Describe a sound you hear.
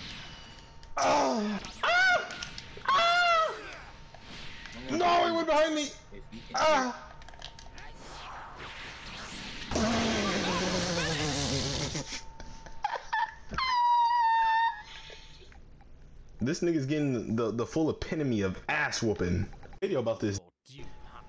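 A young man talks and laughs with animation into a microphone close by.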